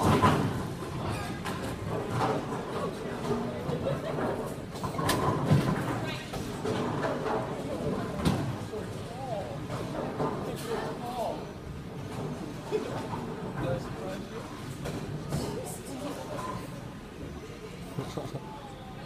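Several adults and children talk and chatter nearby.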